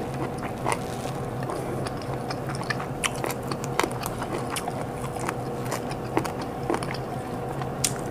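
Food crackles softly as a woman tears it apart with her fingers.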